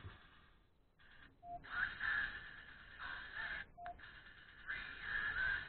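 Music plays thinly from a tiny watch speaker.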